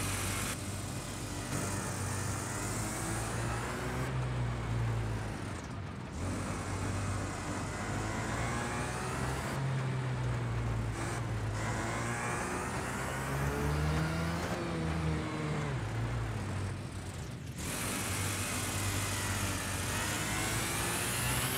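A small racing engine drones, rising and falling in pitch as it revs.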